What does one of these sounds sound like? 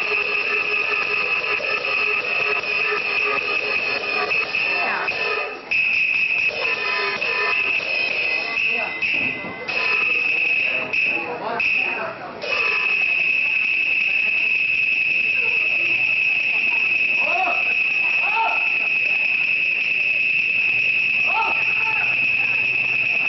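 Electronic music plays loudly, with a steady high whine throughout.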